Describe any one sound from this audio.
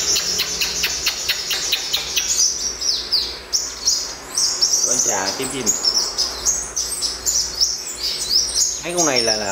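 A caged bird sings loud, rapid chirps and trills close by.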